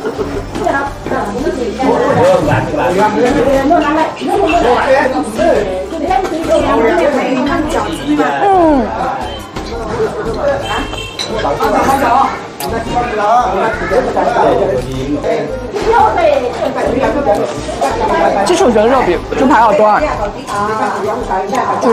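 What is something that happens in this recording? A young woman chews crunchy fried food.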